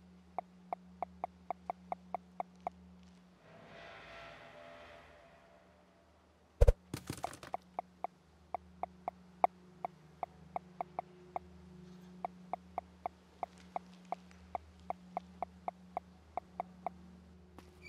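Short, soft clicks tick in quick succession, again and again.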